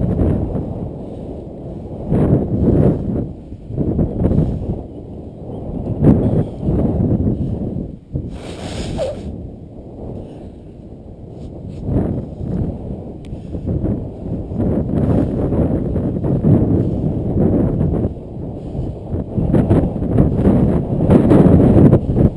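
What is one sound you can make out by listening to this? Wind rumbles and buffets loudly against the microphone outdoors.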